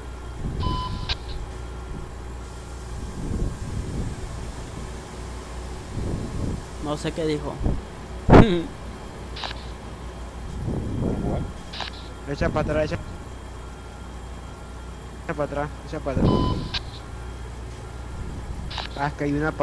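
Truck engines idle with a steady low rumble.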